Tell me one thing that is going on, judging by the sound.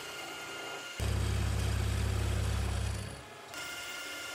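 An end mill drones loudly as it cuts metal.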